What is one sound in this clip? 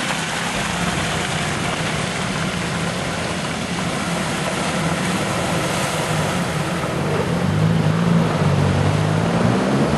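Tyres splash and squelch through mud.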